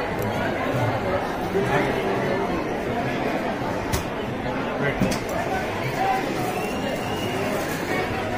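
A crowd murmurs and chatters nearby.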